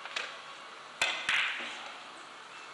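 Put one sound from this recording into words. Billiard balls click against each other and thud off the cushions.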